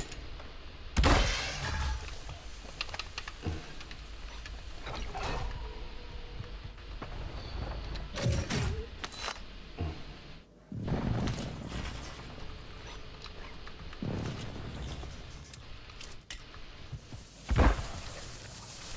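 Gunshots and explosions crack and boom from a game.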